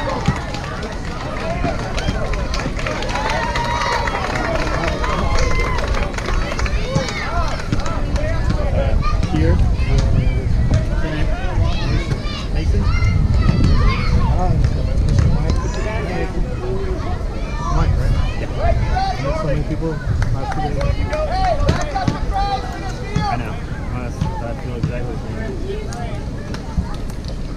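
Spectators chatter and call out nearby outdoors.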